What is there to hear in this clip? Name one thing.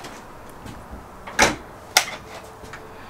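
A refrigerator door swings and thumps shut.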